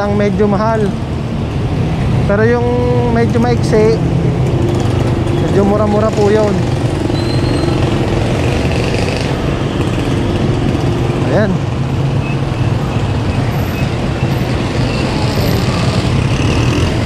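Motorcycle and tricycle engines rumble and putter along a busy street.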